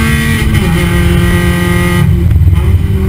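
A race car engine drops in pitch as the driver shifts gear.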